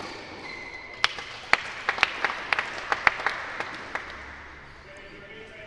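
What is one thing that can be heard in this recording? Spectators applaud in a large echoing hall.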